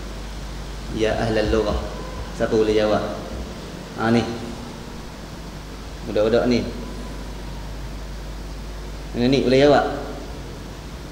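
A young man speaks calmly into a microphone in short phrases with pauses.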